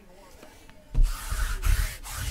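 A sticky lint roller rolls with a crackling rasp.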